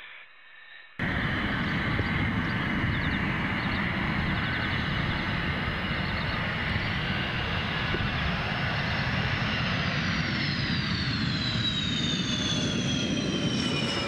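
A jet engine roars loudly as a fighter jet comes in to land.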